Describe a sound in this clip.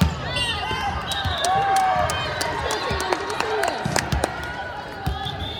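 A crowd of spectators cheers and chatters.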